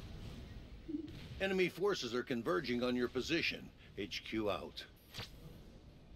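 An elderly man speaks briefly into a close microphone.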